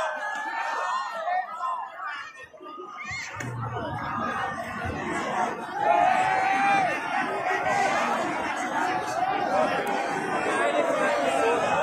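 A large outdoor crowd chatters and shouts with many overlapping voices.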